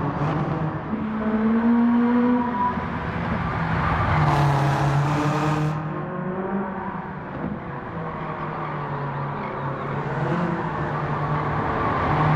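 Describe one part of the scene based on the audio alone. A racing car engine roars and changes pitch as it speeds up and slows down.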